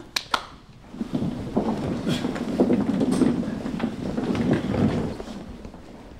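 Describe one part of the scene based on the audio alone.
A group of young people chatter and murmur together.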